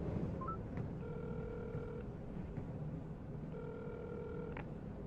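A phone ring tone sounds quietly through an earpiece.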